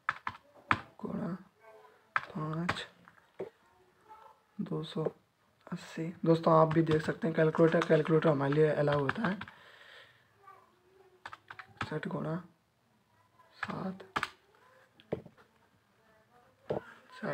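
Calculator keys click as they are pressed.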